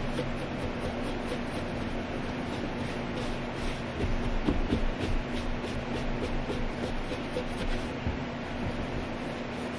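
Hands rustle and tap on panels.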